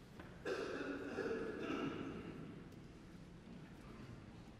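A small choir of men and women sings a chord that rings out and fades in a large echoing hall.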